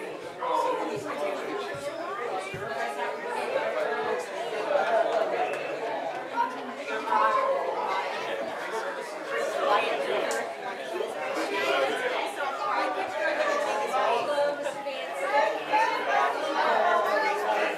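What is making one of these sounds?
Many men and women chat at once in a room.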